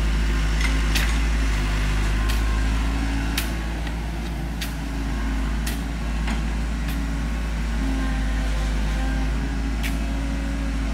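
A hoe chops into soil with regular thuds.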